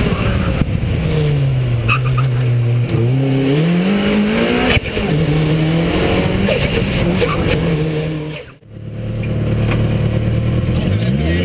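A car engine roars close by, revving up and dropping with each gear change.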